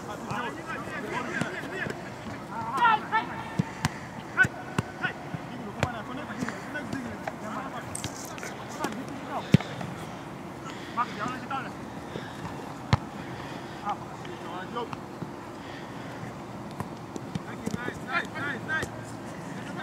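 A soccer ball is kicked with dull thumps.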